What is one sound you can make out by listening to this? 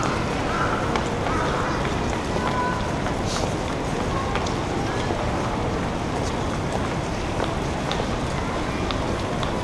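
Footsteps tap on paving as people walk past close by.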